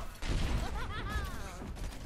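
A video game gun fires.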